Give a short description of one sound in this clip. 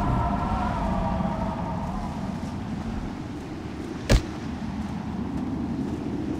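Water splashes softly as a figure wades through it.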